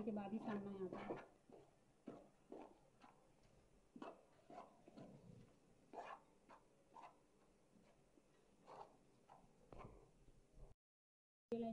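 Hands rub and squeeze crumbly dough in a metal bowl.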